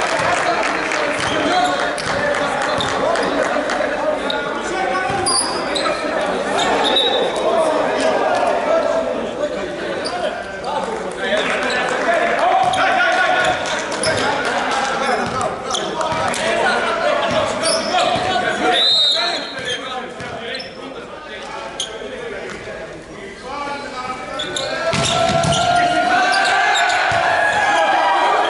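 Young men call out and shout to each other in a large echoing hall.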